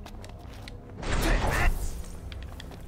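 A sharp magical whoosh bursts out.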